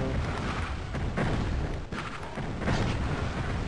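A crossbow-like weapon fires with a sharp whoosh.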